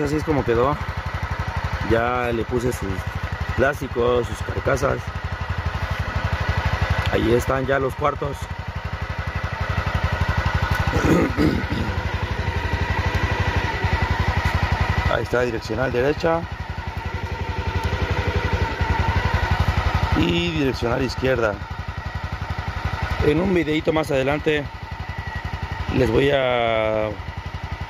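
A motorcycle engine idles steadily nearby.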